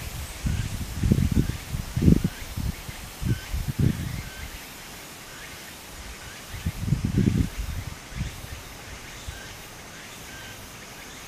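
Shallow water trickles softly over a rocky streambed.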